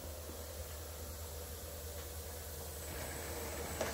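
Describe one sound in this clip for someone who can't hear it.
A finger presses buttons on a machine.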